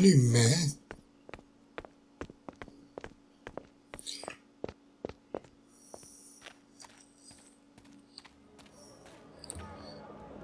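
Footsteps tap on cobblestones at a steady walking pace.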